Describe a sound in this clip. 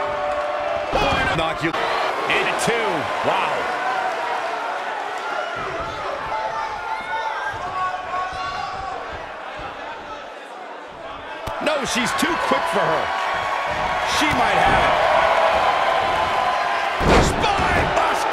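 Bodies slam heavily onto a ring mat.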